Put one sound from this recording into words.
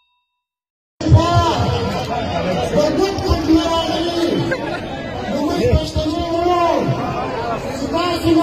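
A man speaks forcefully through a loudspeaker outdoors.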